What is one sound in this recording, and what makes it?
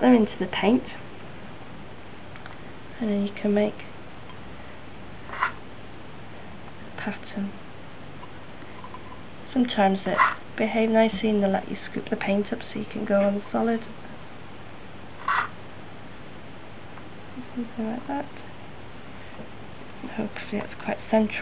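A woman speaks calmly close by, in short bursts with pauses.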